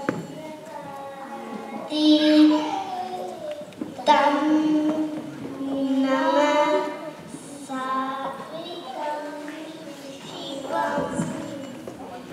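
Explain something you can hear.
Another young girl answers through a microphone over loudspeakers.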